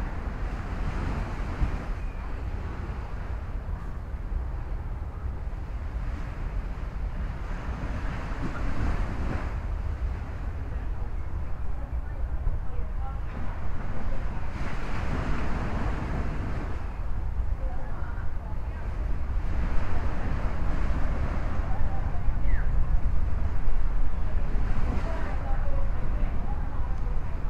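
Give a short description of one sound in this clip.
Palm leaves rustle in the breeze.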